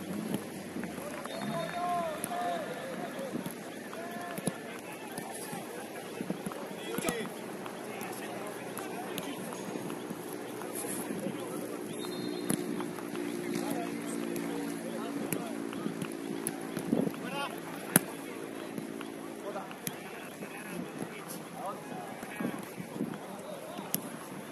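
Men shout and call out to each other outdoors at a distance.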